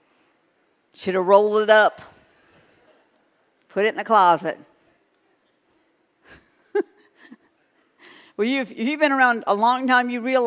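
A middle-aged woman speaks with animation into a microphone, in pauses, in a large hall.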